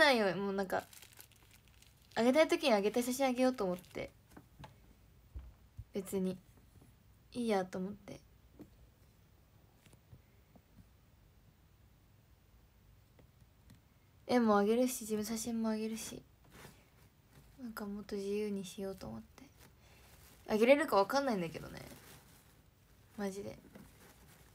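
A young woman talks calmly and close into a microphone, in short bursts with pauses.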